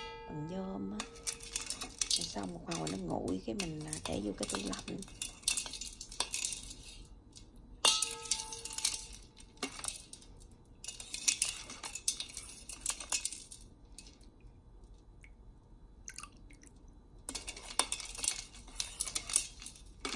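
A metal spoon stirs liquid and clinks against a steel pot.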